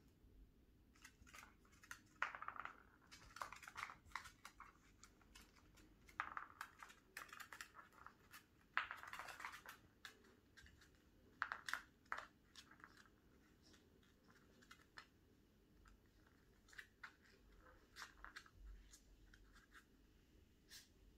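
A puppy's paws scrabble and tap on a wooden floor.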